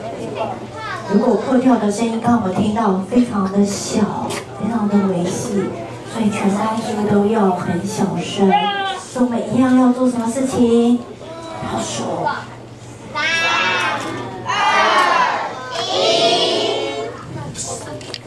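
A woman speaks calmly through a loudspeaker in a large echoing room.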